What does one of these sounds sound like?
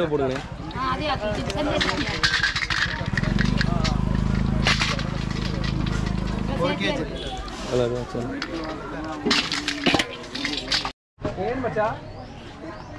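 People chatter in the background outdoors.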